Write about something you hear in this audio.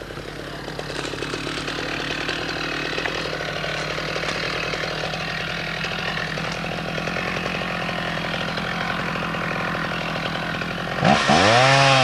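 A chainsaw engine idles with a low, steady rumble.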